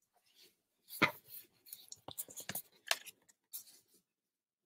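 A paper card rustles and taps against a table.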